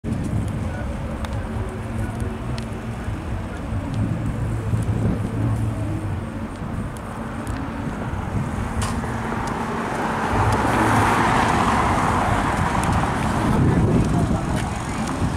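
Wind blows outdoors and buffets the microphone.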